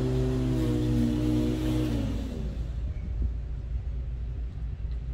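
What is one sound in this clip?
A lawn mower engine drones nearby, then drops to a low rumble.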